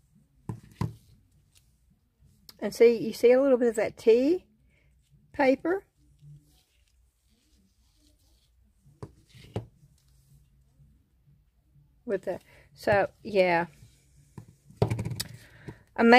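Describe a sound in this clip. Hard plastic coasters clack softly as they are set down on a wooden surface.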